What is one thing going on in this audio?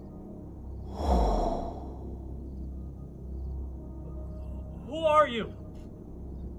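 A young man calls out tensely nearby.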